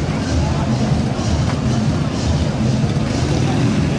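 A motorcycle rides slowly past.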